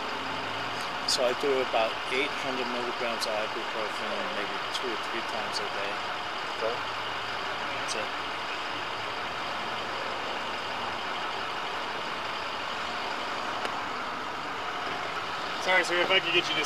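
A man speaks close by in a calm voice.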